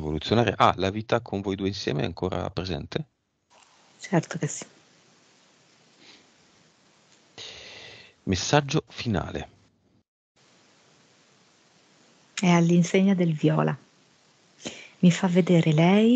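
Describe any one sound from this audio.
A man talks with animation through a headset microphone over an online call.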